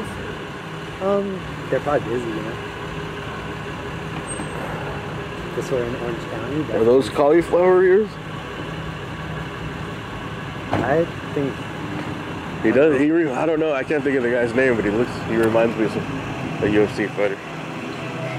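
A man talks in a low voice close by.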